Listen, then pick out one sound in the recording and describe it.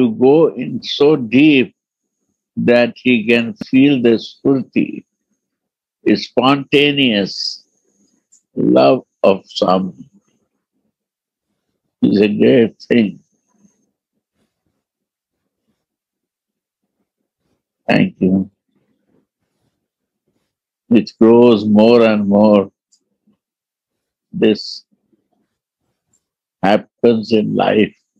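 An elderly man speaks calmly in short phrases with long pauses, heard through an online call.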